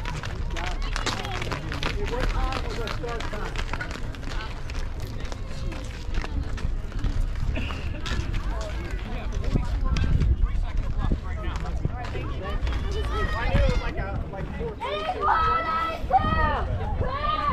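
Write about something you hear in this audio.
Young women shout and cheer outdoors.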